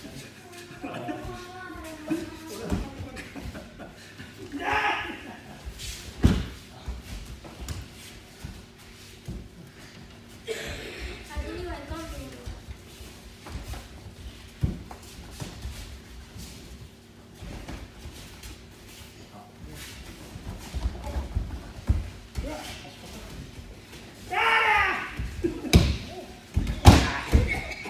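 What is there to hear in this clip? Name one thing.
Bodies thud heavily onto a padded mat now and then.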